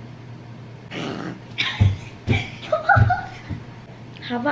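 A young girl exclaims loudly.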